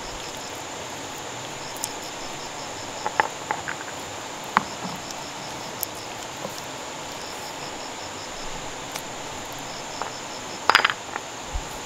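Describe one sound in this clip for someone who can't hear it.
Wet mud squelches as hands press it between stones.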